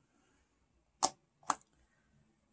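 A small metal makeup pan clicks into place twice.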